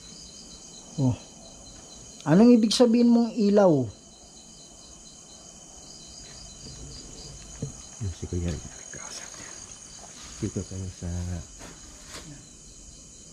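A man speaks in short bursts close to a microphone.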